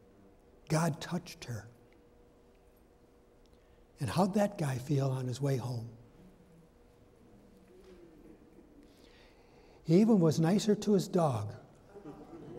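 An elderly man speaks slowly and calmly through a microphone in a large echoing hall, with long pauses.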